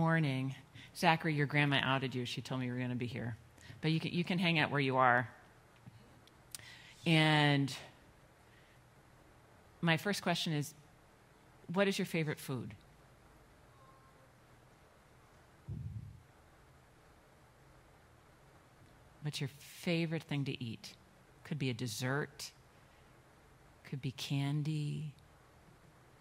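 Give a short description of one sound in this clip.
A woman speaks with animation through a microphone in a large echoing hall, pausing between phrases.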